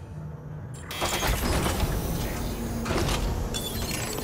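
A heavy metal door slides open with a loud mechanical rush.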